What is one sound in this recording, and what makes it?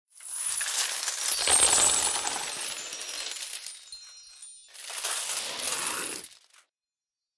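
Coins cascade and jingle.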